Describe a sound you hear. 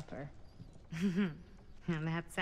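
A young woman laughs softly.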